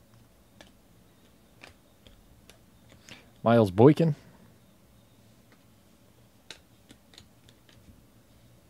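Trading cards flick and rustle softly in a hand close by.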